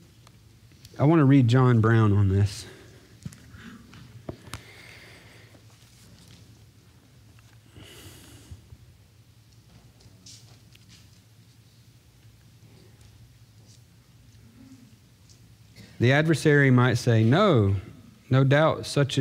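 A man speaks calmly into a microphone in a large, echoing room.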